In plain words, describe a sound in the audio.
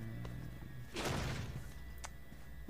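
A heavy wooden door swings open with a sudden rush.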